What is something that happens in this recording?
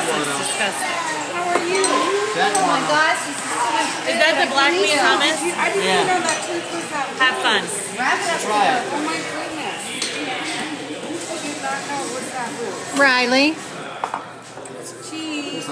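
Several people chatter and laugh together in a lively room.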